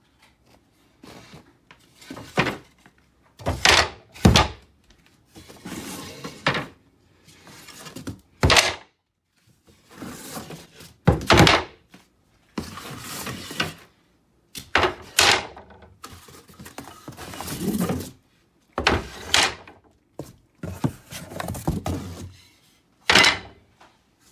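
Wooden slats knock and clatter.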